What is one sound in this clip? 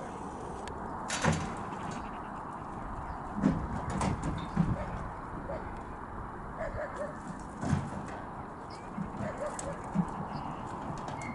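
Sheep hooves clatter on a metal ramp and gravel.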